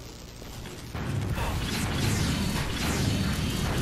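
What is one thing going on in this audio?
Gunfire rattles nearby.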